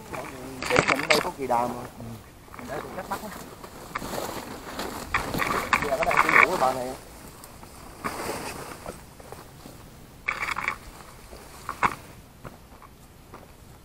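A large plastic bag crinkles and rustles.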